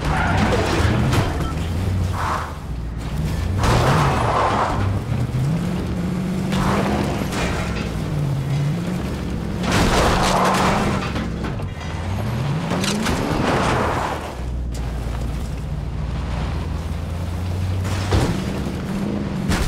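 Car tyres screech while drifting around corners.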